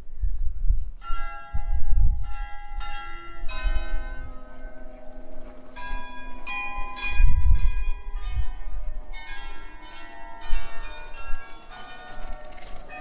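Church bells play a tune from a nearby tower.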